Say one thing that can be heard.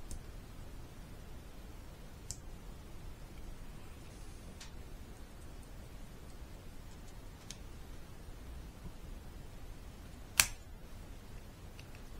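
Small plastic parts click and snap as hands handle them.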